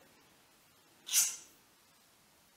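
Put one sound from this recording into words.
A spoon scrapes briefly against a metal pan.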